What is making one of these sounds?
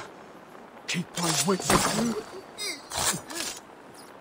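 A blade stabs into a body with a heavy thud.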